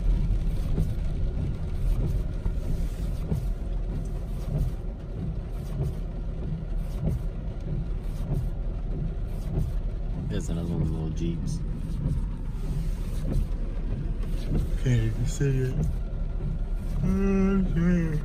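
Windshield wipers sweep back and forth.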